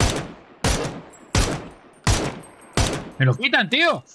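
Rifle shots boom loudly one after another.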